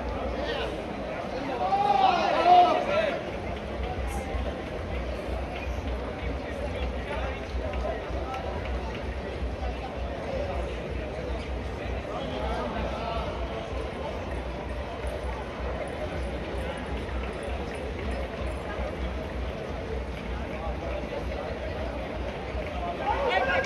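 Many runners' footsteps patter on the street.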